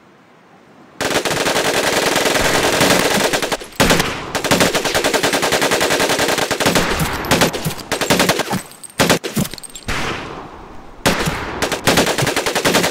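A Thompson submachine gun fires in bursts.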